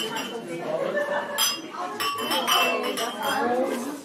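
Wine glasses clink together in a toast.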